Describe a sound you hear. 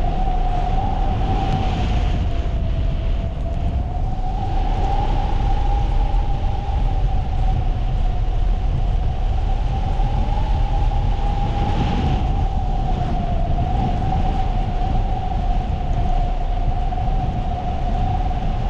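Wind roars and buffets steadily past a hang glider in flight.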